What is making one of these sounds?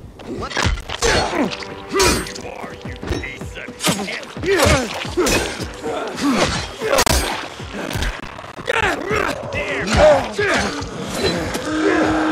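A blade strikes bodies with heavy, wet thuds again and again.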